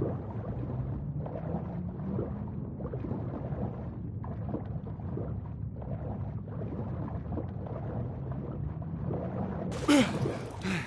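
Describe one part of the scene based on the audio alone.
Muffled underwater sounds rumble as a swimmer moves through the water.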